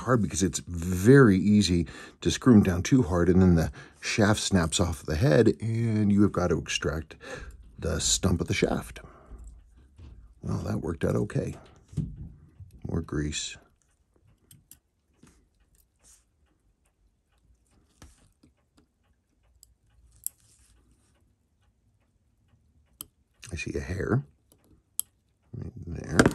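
Metal tweezers click faintly against a watch movement.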